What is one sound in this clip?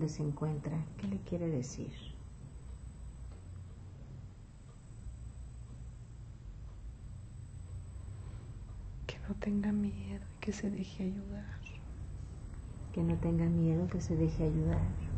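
A woman talks nearby in a calm voice, with pauses.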